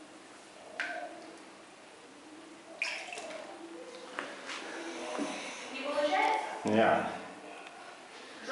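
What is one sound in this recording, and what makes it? Water ripples softly as a swan swims.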